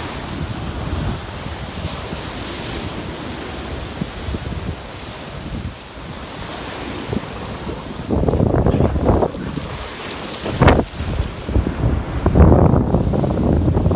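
Waves wash and break steadily on a shore.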